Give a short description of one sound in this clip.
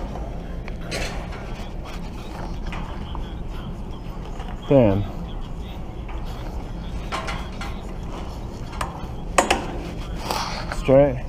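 Bicycle parts click and rattle as a hand handles them.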